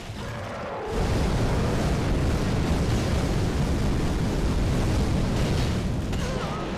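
Fire roars in a loud burst.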